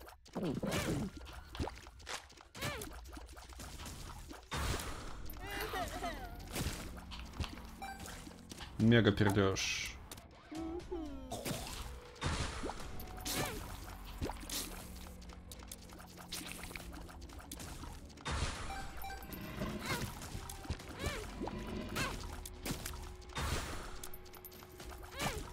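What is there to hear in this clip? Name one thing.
Game sound effects of shots, splats and thuds play throughout.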